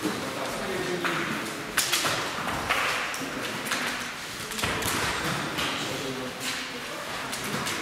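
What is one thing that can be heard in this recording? Jump ropes swish and slap against a wooden floor.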